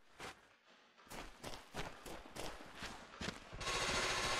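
Boots thud in quick steps on stone.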